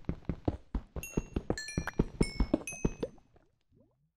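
Short high pops sound as items are picked up.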